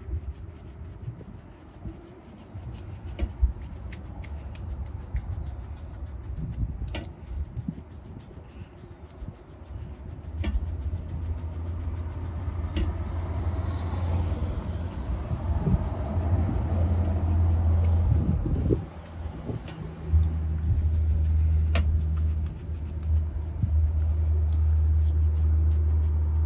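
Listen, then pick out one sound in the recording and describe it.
A stiff brush scrubs briskly over a leather shoe.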